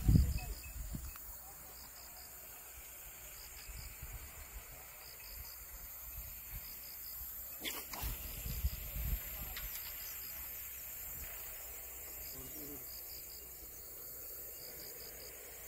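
Wind rumbles across the open air.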